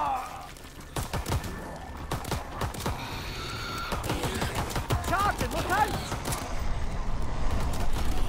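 A gun fires in quick, loud bursts.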